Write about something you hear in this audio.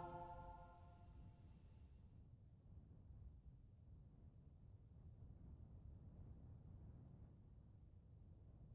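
A jet engine rumbles steadily in a low drone.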